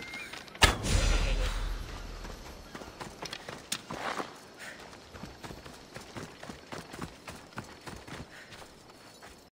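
Footsteps crunch on sand and stones at a steady walking pace.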